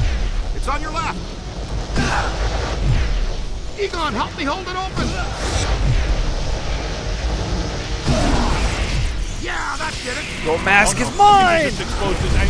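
An electric energy beam crackles and hums.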